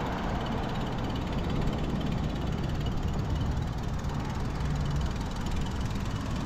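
Bicycle tyres rumble over brick paving.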